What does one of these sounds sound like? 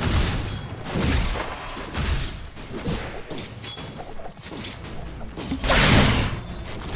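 Game spell effects and combat clash and burst rapidly.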